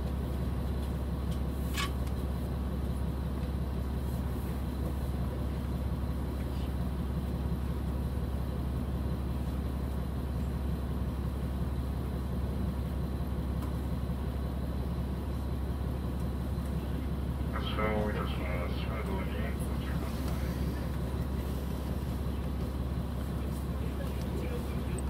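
A diesel railcar's engine idles with a low, steady rumble.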